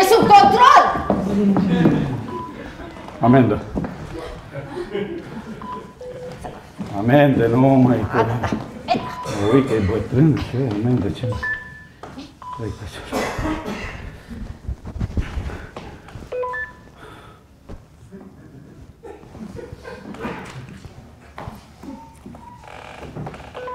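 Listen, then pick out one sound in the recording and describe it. An elderly woman answers in a raised voice.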